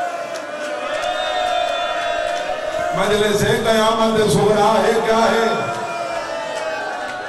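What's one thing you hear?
A young man speaks with passion into a microphone, heard through a loudspeaker in a reverberant hall.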